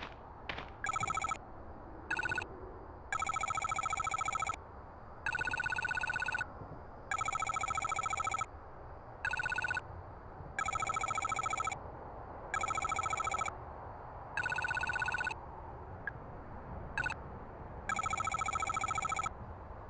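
Rapid electronic blips chirp as game dialogue text types out.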